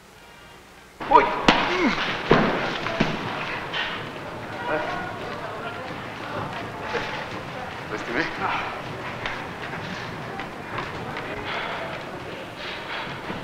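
Boxing gloves thud against a heavy punching bag.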